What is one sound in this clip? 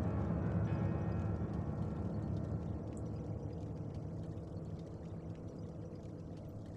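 A fire crackles softly.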